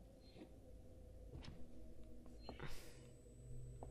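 A button clicks on a wall phone panel.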